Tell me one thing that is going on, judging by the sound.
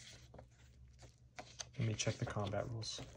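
Paper pages rustle as a booklet is flipped open.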